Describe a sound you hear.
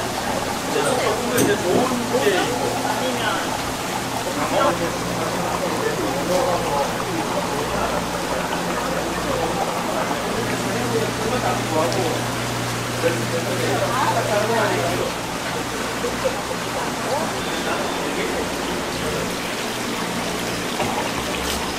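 Water bubbles and splashes steadily in aerated tanks.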